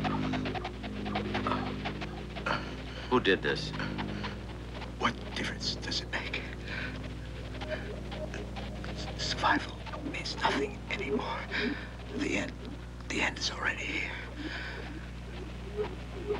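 A man speaks weakly and breathlessly, close by.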